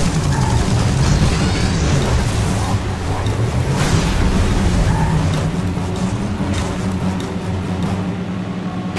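A vehicle engine rumbles steadily as it drives.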